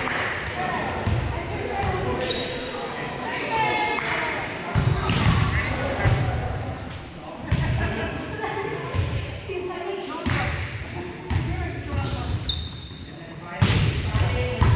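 Several adult players call out to one another across a large echoing gym.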